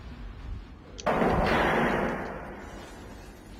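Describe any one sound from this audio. A heavy metal gate scrapes and crashes with a loud rumble.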